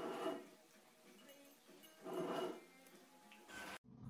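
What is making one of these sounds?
A cat eats noisily from a bowl.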